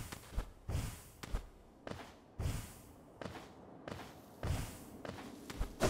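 A soft whoosh sounds with each leap.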